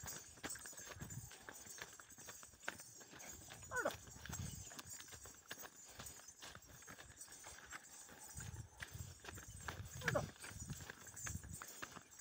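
A camel's hooves thud and scuff in soft sand.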